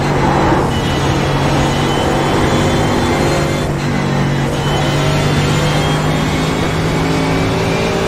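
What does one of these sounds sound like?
A racing car engine roars loudly at high revs, climbing steadily in pitch.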